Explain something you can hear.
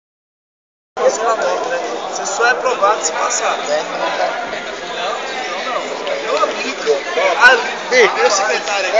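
A crowd of young players and spectators shouts and chatters in a large echoing hall.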